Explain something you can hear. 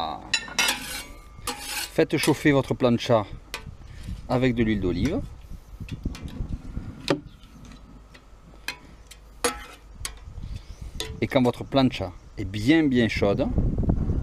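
A metal spatula scrapes across a flat griddle.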